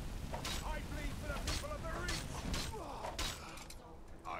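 Fire crackles and roars from a spell.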